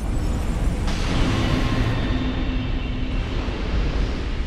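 A deep chime rings out and fades.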